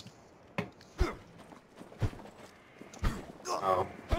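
Heavy blows land with dull thuds.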